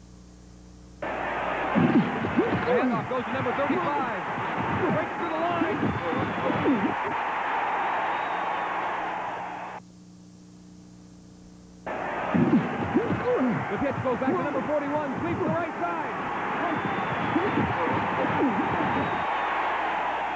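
A crowd roars during a football play.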